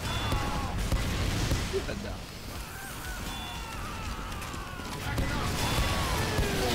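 A heavy gun fires repeatedly.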